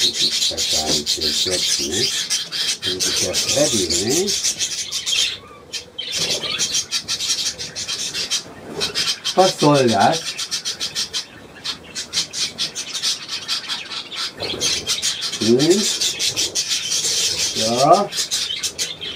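An elderly man talks close by.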